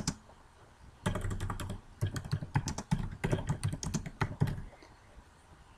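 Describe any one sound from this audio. Keys clatter quickly on a keyboard.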